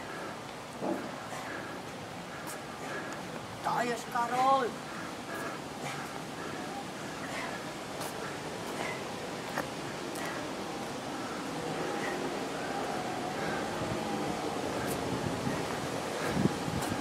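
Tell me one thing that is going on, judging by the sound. Footsteps thud on pavement at a steady pace.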